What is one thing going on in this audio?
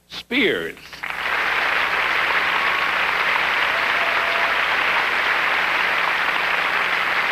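A large audience applauds and cheers in an echoing hall.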